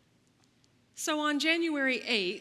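A woman sings loudly through a microphone in a large echoing hall.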